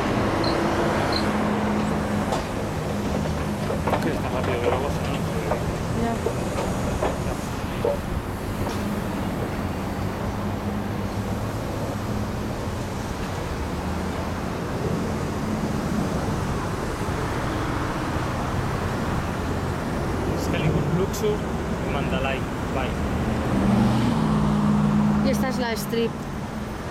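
Traffic hums steadily on a busy road below, outdoors.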